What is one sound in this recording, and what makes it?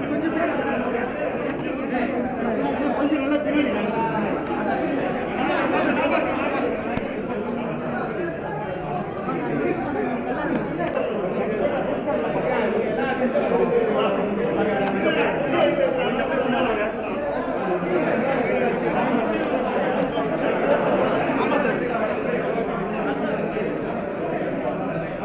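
A crowd of men murmurs and talks all around in an echoing room.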